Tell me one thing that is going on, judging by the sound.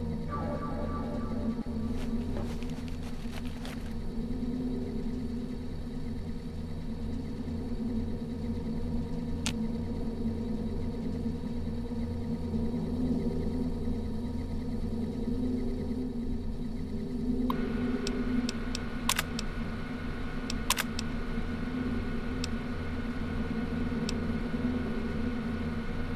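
A deep machine hum drones steadily throughout.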